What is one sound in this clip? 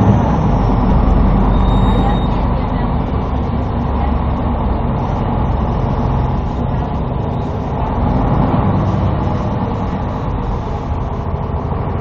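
A vehicle engine rumbles steadily from inside while riding along.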